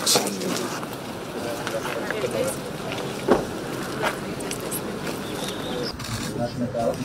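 A small group of men and women chat nearby outdoors.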